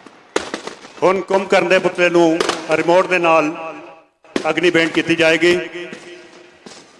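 A man speaks loudly over a loudspeaker.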